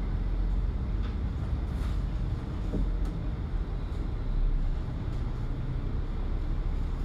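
A bus engine rumbles low and steady while driving.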